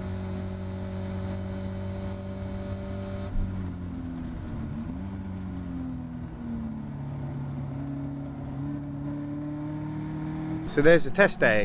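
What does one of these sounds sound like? A race car engine drones steadily, shifting pitch as the car drives.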